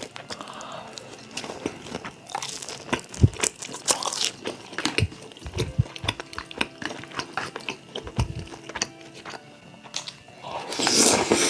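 A young man chews and smacks his lips close to a microphone.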